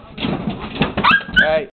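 A small dog yelps and whines close by.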